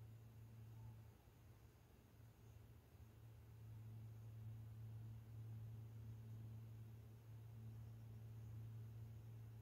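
A paintbrush softly brushes across canvas.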